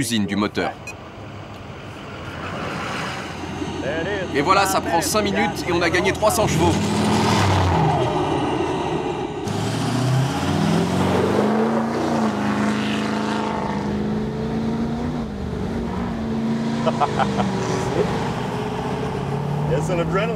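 A heavy truck engine revs loudly and roars.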